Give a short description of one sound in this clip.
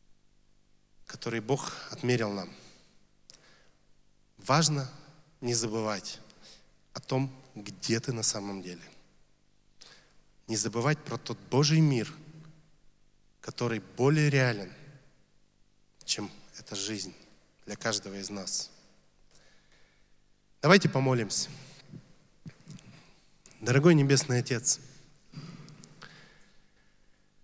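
A young man speaks calmly into a microphone in phrases with pauses.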